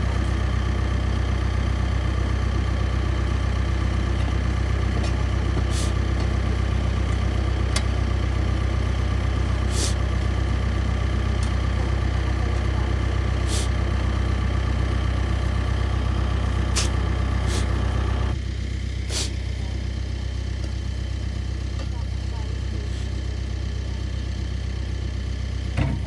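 Shovels scrape and chop into wet, grassy dirt.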